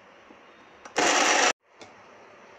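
An electric mixer grinder whirs in a short burst.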